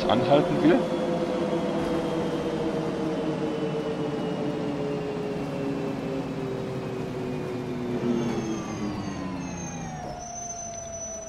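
A bus engine whines and winds down as the bus slows to a stop.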